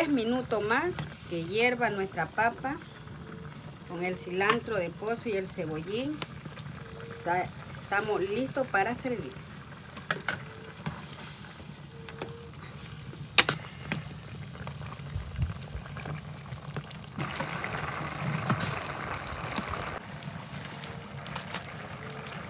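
A metal spoon scrapes and clinks against a pot.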